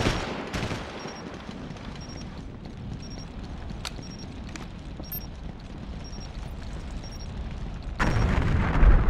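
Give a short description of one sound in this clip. A countdown timer beeps once a second, high and short.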